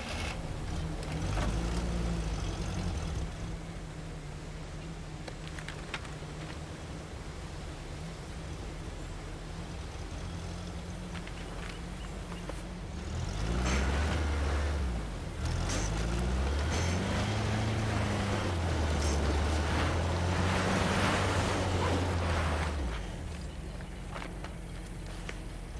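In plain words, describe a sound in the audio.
An off-road vehicle's engine rumbles and revs up and down.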